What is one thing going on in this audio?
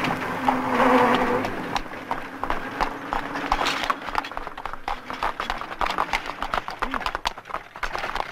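An old truck engine rumbles as the truck drives slowly closer.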